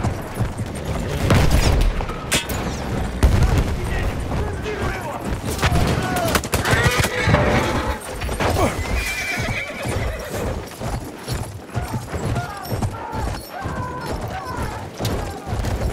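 Horse hooves pound on snowy ground at a gallop.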